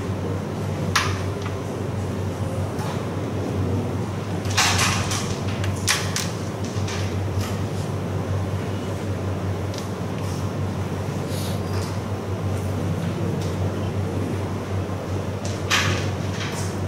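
Wooden carrom pieces click sharply as a striker hits them.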